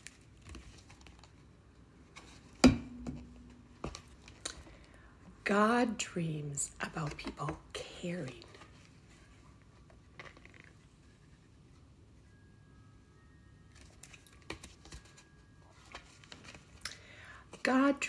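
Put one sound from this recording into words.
Book pages rustle as they turn.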